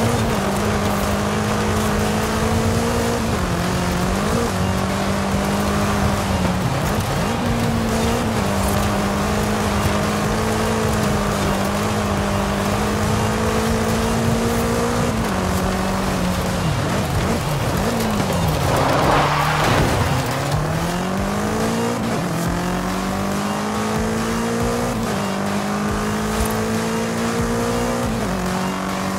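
A car engine roars and revs up and down through gear changes.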